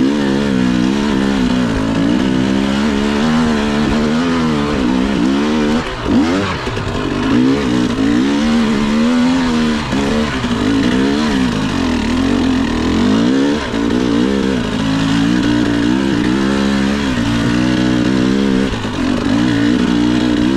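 A dirt bike engine revs up and down close by.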